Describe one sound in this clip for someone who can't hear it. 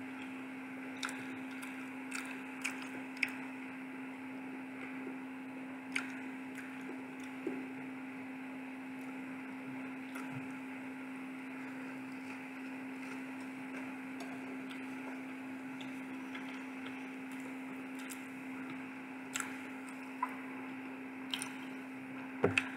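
Soft clicks and rustles come as food is handled over a plate.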